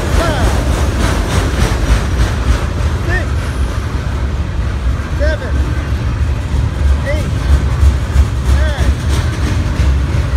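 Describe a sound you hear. A freight train rumbles past up close with a heavy, steady roar.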